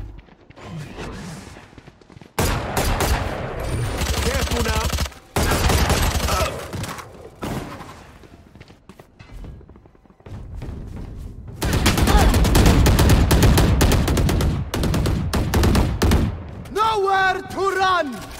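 A rifle fires in rapid bursts up close.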